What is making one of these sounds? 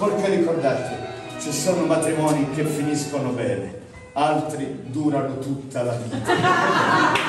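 A man sings loudly and dramatically in an echoing stone hall.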